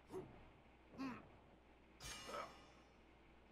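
Heavy blows land with sharp impacts.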